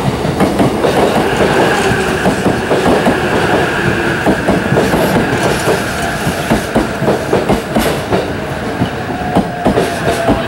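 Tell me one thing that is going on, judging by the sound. A train's brakes squeal as it slows.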